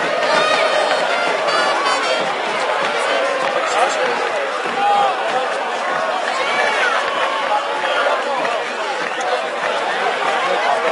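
A large stadium crowd cheers and chants loudly throughout.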